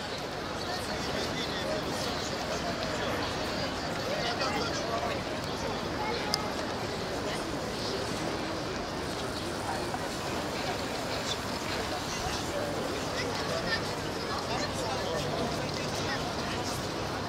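A crowd of people chatters outdoors in a wide open space.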